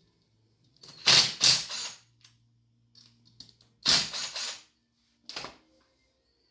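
A cordless impact driver whirs and rattles in short bursts.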